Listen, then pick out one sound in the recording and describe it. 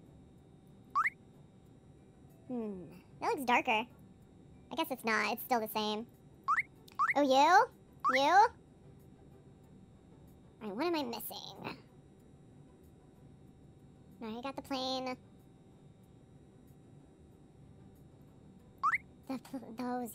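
A short rising electronic chime sounds a few times.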